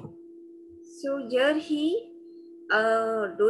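A woman speaks over an online call.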